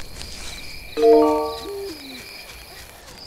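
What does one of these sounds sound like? A short bright chiming jingle plays.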